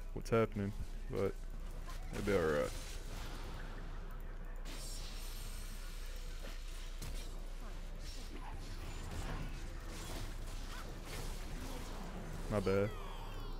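Fantasy battle sound effects zap and clash.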